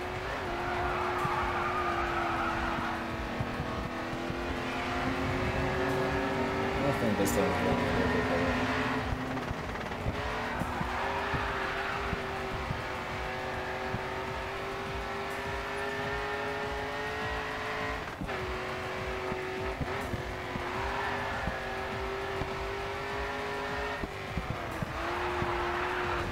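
Tyres screech as a car slides through a bend.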